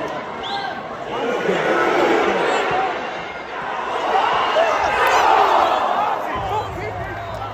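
A large football crowd roars as an attack on goal comes to nothing.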